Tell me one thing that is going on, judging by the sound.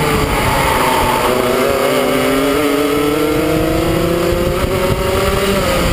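Another kart engine buzzes ahead.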